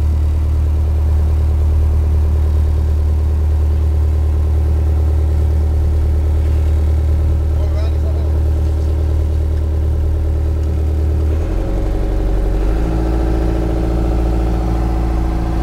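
A fishing boat's diesel engine drones in the wheelhouse, then shifts to a lower hum.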